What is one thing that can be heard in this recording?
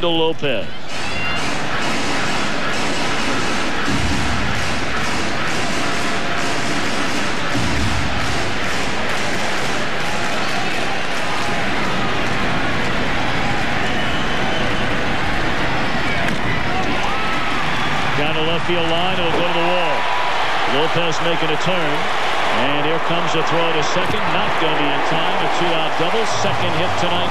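A large crowd murmurs and cheers in a big open stadium.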